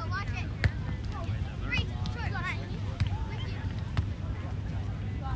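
Young girls and spectators call out and chatter nearby.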